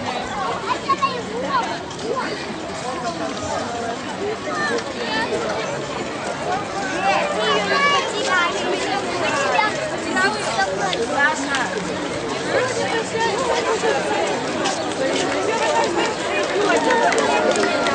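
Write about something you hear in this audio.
A large outdoor crowd chatters and calls out with many voices.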